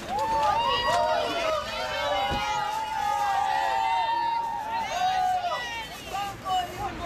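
A group of young people sing loudly together outdoors.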